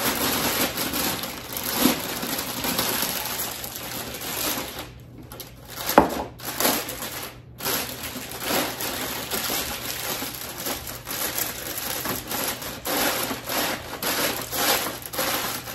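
Foil crinkles and rustles as it is pressed and folded.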